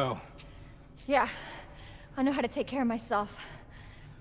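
A young woman speaks calmly in reply.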